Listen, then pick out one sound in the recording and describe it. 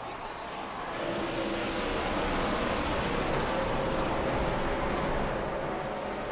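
A pack of race car engines roars past loudly.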